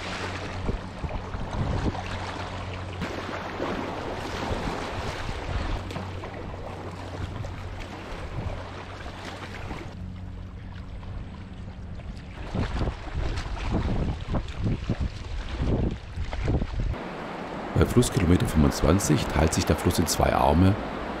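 A paddle splashes and dips into the water in steady strokes.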